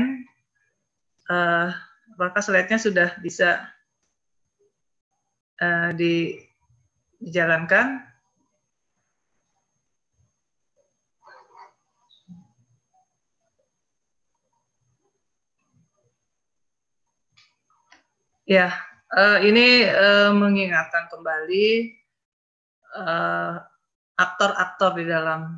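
A middle-aged woman speaks calmly over an online call, in short phrases with pauses.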